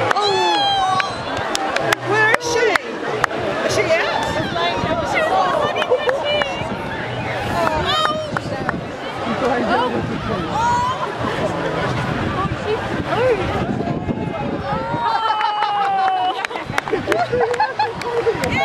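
A large outdoor crowd cheers and shouts loudly.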